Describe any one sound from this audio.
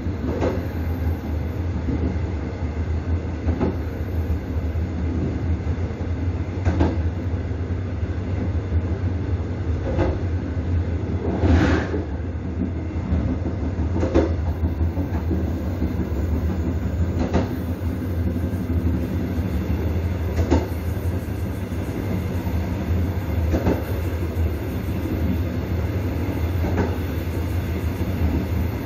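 Train wheels clack over rail joints.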